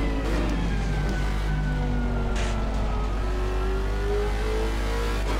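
A race car engine roars steadily, its pitch sinking and then climbing as it changes gear.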